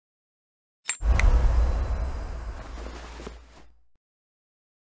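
A soft magical whoosh swells and fades as the puzzle changes.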